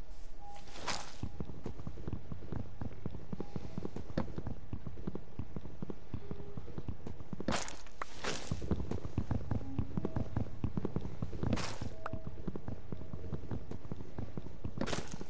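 Wooden blocks thud in quick, repeated knocks as they are chopped.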